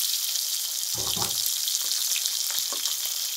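A metal spatula scrapes against a pan.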